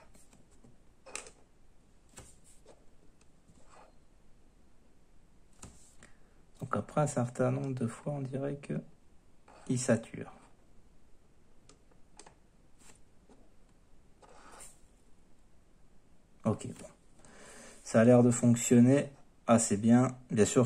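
Small plastic parts click softly as they are pushed together and pulled apart.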